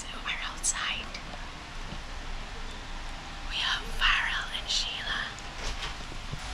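A man whispers close to a microphone.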